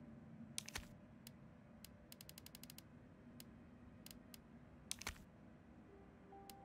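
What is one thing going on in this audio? Soft menu clicks tick quickly as a selection moves through a list.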